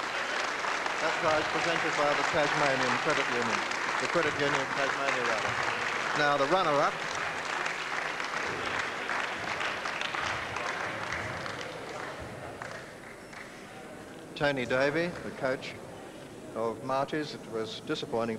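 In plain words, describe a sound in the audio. A man announces calmly through a microphone and loudspeaker.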